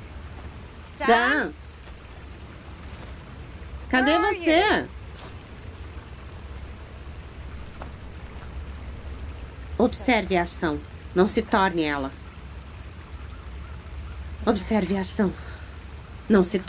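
A young woman calls out.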